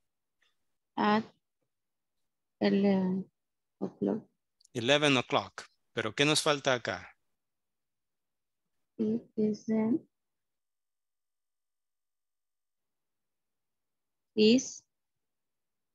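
A woman speaks calmly over an online call, in short phrases.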